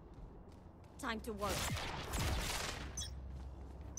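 A magical energy effect crackles and whooshes loudly.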